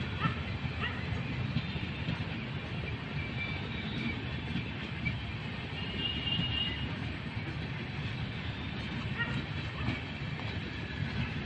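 A passenger train rumbles past on the rails.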